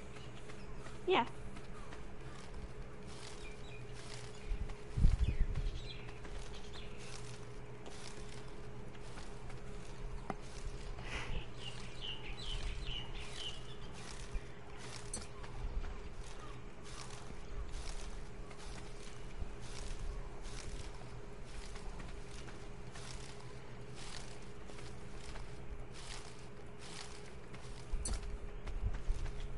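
Leaves and plants rustle as they are picked by hand, over and over.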